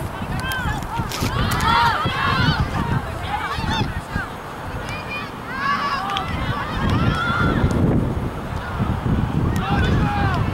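Young women shout to each other in the distance outdoors.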